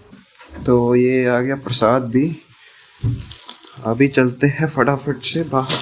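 A plastic sack rustles and crinkles as it is handled.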